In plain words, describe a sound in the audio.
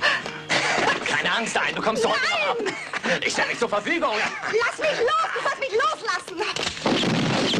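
A woman screams and cries out in distress close by.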